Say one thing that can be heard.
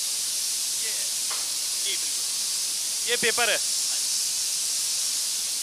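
Factory machinery runs with a steady, loud hiss.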